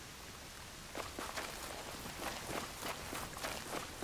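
Footsteps run quickly over dirt and leaves.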